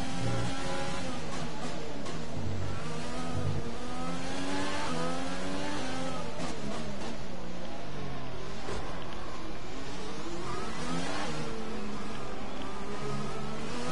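A racing car engine screams, rising and falling in pitch as it shifts gears and brakes.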